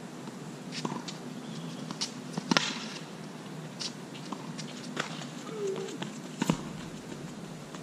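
Tennis shoes squeak and scuff on a hard court.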